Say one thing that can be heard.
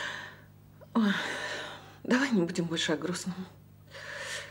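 An older woman speaks in a low, troubled voice, close by.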